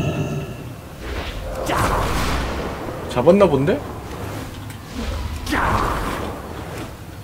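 Air whooshes as a gliding creature swoops past.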